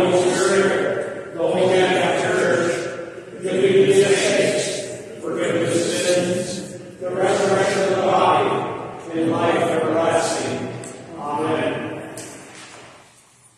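An elderly man sings a slow chant in an echoing room.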